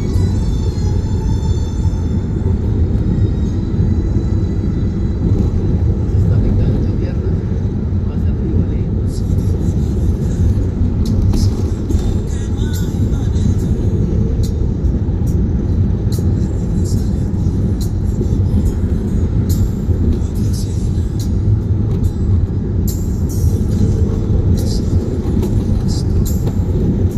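Tyres roll on a paved road with a steady low roar.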